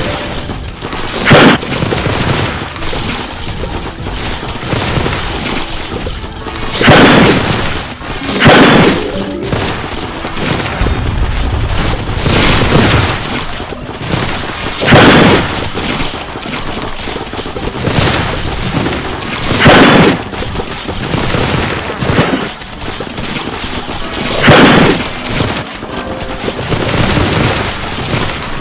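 Video game plants fire a rapid stream of popping shots.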